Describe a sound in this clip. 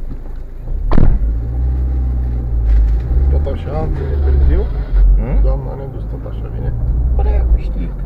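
A car engine revs louder as the car pulls away.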